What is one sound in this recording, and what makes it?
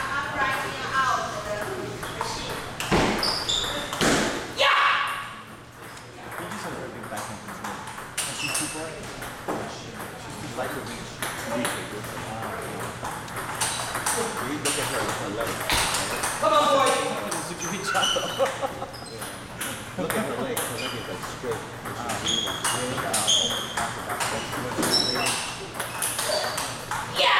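A ping-pong ball clicks back and forth off paddles and a table in a large echoing hall.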